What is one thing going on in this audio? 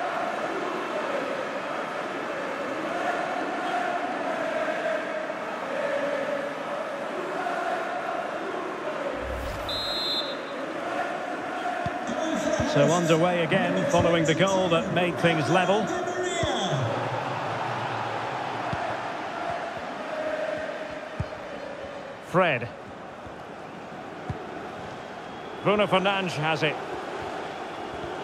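A large stadium crowd chants and cheers steadily.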